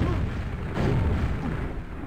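A rocket explodes nearby.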